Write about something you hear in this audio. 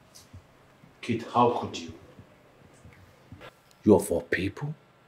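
A man speaks close by, sounding puzzled and questioning.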